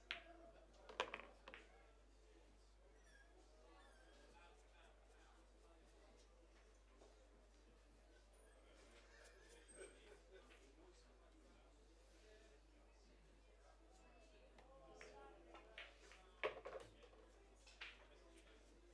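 Pool balls clack against each other.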